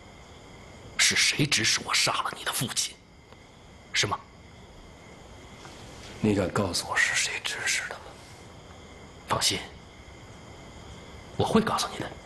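Another man speaks calmly and firmly, asking questions, close by.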